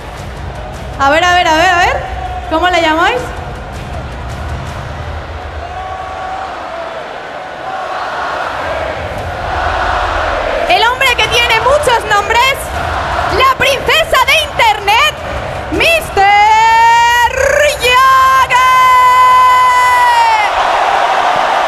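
A young woman sings into a microphone over loudspeakers in a large echoing arena.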